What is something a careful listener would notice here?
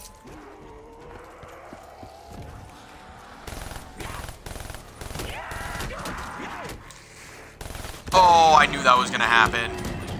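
Zombies growl and moan nearby.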